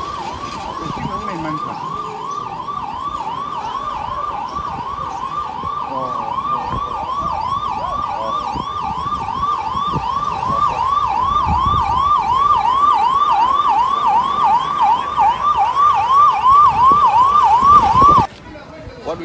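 A siren wails in quick repeated whoops, growing louder as a vehicle approaches.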